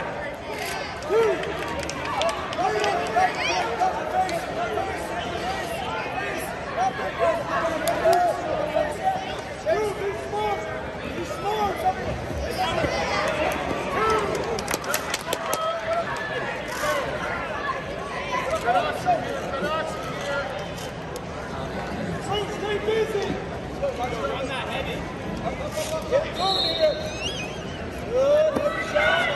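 A crowd chatters and calls out throughout a large echoing arena.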